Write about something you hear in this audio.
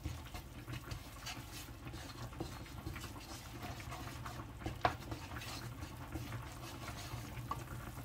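A wooden spatula scrapes and stirs thick paste in a pan.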